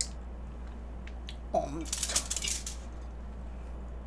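Plastic wrapping crinkles as a young woman handles it.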